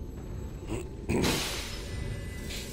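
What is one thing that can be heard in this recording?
A magical shimmer swells up with a bright whoosh.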